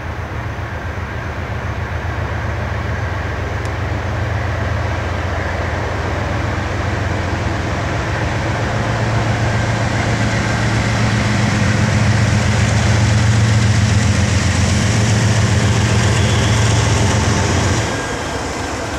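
Diesel locomotive engines rumble loudly and deeply as a train approaches and passes.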